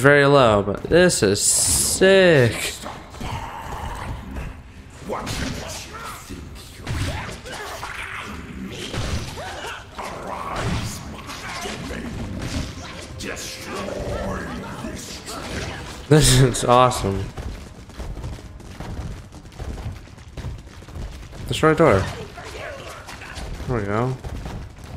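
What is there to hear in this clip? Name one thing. A deep, distorted monstrous voice speaks and growls.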